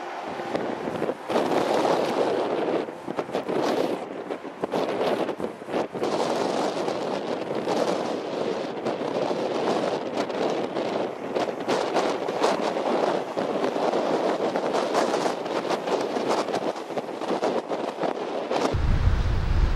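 Strong wind buffets outdoors.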